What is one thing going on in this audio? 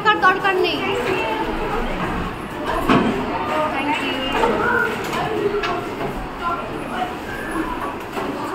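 A crowd of children chatter and call out loudly indoors.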